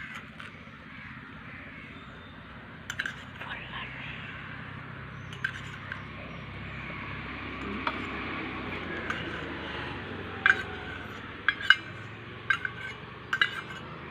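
A spoon clinks against a glass cup.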